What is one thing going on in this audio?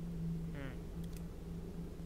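Soft clicks sound twice in quick succession.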